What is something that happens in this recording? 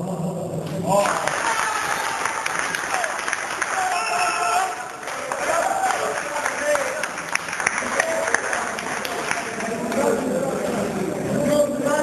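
A crowd of men and women cheers and shouts loudly.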